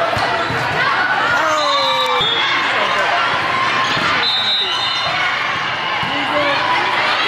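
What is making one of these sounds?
Shoes squeak sharply on a hard floor.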